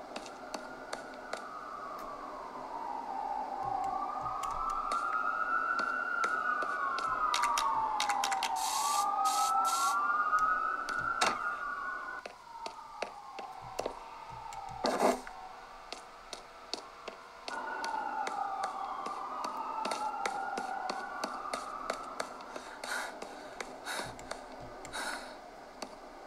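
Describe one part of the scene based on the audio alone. A handheld game console plays game sound effects through its small speakers.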